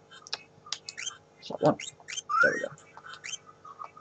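A short electronic chime sounds as a menu choice is confirmed.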